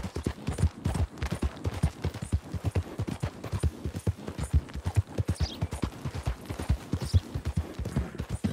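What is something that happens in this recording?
A horse's hooves thud steadily on a dirt trail.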